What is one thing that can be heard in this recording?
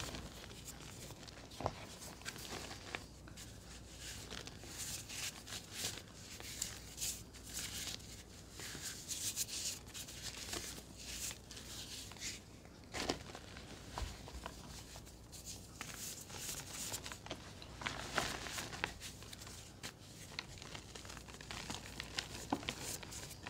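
Powdery chalk crumbles and crunches between fingers up close.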